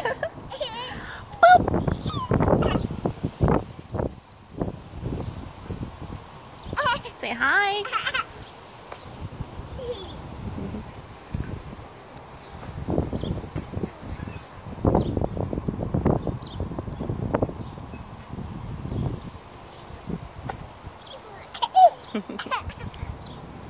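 A small child laughs and squeals happily close by.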